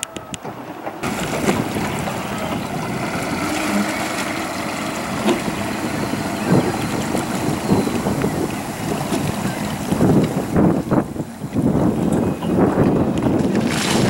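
An outboard motor idles and hums close by.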